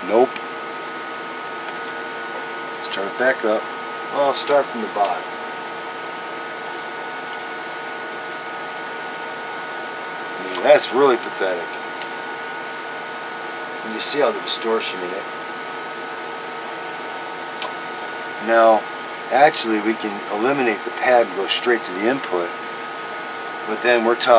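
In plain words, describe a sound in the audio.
A steady electrical hum drones throughout.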